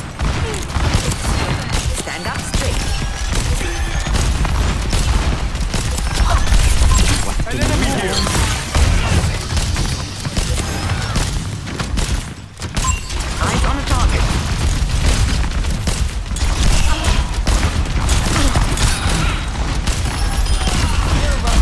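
Weapon blasts and explosions boom repeatedly.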